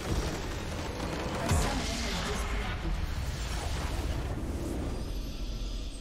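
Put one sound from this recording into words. A game building explodes and crumbles with a loud rumble.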